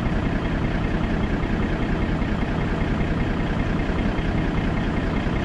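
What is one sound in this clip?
A truck's cab rattles and shakes over a bumpy snowy track.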